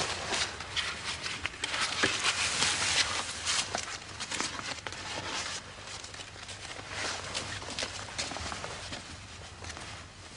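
Paper crinkles and rustles as it is unfolded.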